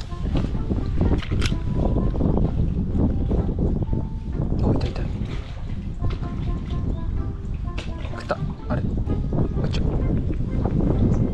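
A fishing reel clicks and whirs as it is wound in.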